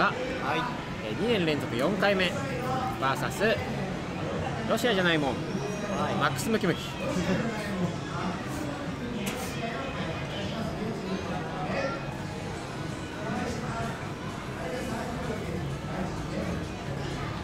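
Young men talk with each other nearby.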